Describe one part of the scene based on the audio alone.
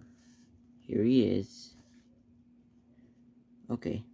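A small plastic toy figure is set down on a hard tabletop with a soft knock.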